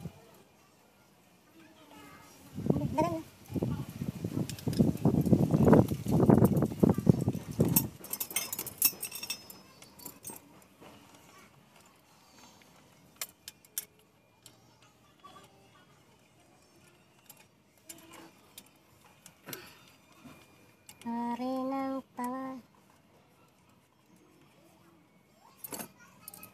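Metal tools clink and scrape against engine parts.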